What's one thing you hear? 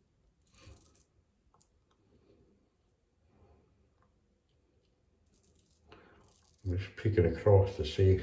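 A razor scrapes softly across stubble.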